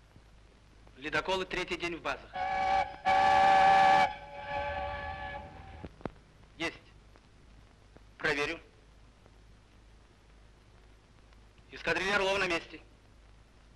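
A man speaks into a telephone in short bursts.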